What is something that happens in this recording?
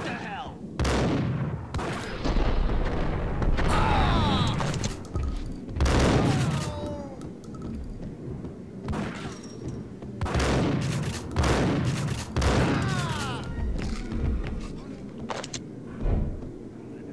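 Gunshots boom loudly, one after another, echoing off the walls.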